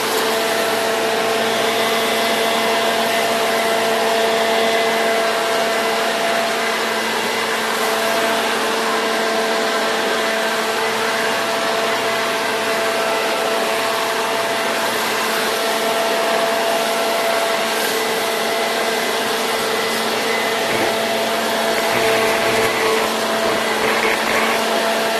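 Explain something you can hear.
Dry leaves rustle and skitter as they are blown across the ground.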